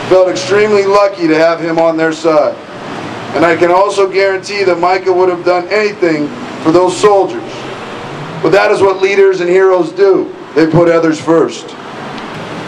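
A man speaks slowly and solemnly into a microphone over a loudspeaker, outdoors.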